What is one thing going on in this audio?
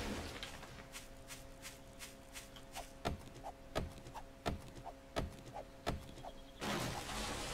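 An axe chops at a tree trunk with sharp knocks.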